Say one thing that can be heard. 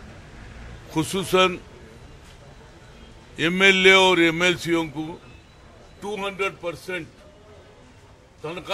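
An elderly man speaks calmly into a microphone close by, with pauses.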